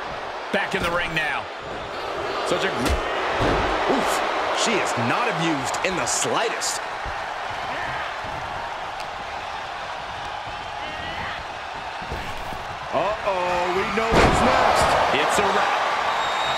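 Bodies slam onto a wrestling ring mat.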